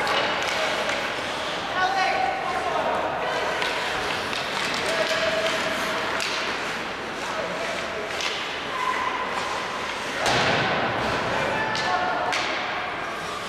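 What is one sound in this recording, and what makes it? Skates scrape across ice in a large echoing arena.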